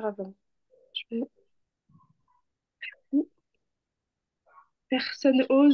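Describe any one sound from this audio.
A young woman speaks slowly and clearly through a microphone, pausing between short syllables.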